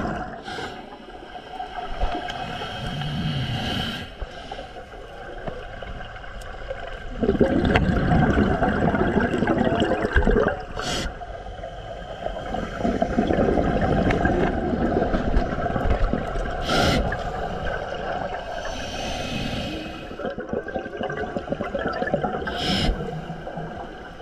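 Bubbles from a diver's breathing gurgle and rumble underwater.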